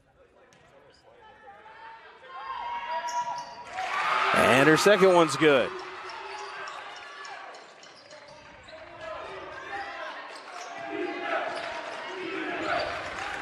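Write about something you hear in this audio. A crowd chatters in the stands.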